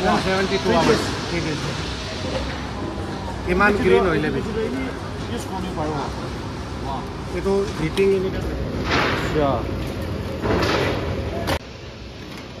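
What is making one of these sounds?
A man answers calmly close by.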